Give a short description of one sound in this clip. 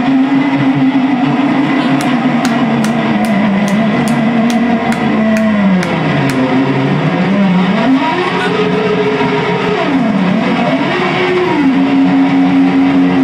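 An electric guitar plays a wailing, bending melody.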